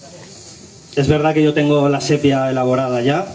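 A man speaks loudly through a loudspeaker outdoors.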